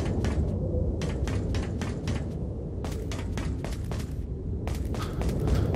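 Quick footsteps run over a hard floor.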